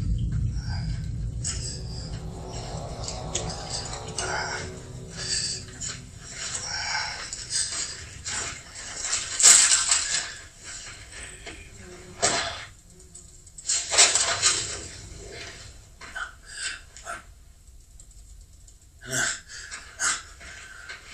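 Footsteps crunch on dry, gritty ground.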